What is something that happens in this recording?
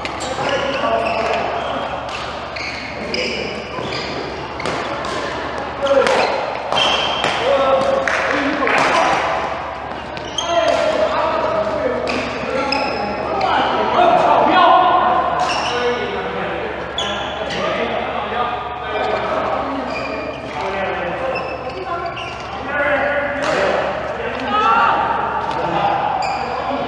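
Men and women talk and call out across an echoing hall.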